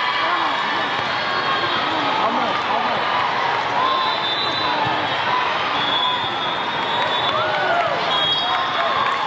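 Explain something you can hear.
A crowd of spectators chatters and cheers in a large hall.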